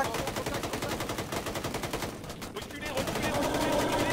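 A rifle fires shots in a narrow corridor.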